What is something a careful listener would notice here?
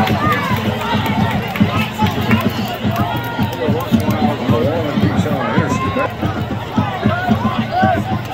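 Nearby spectators shout and talk excitedly.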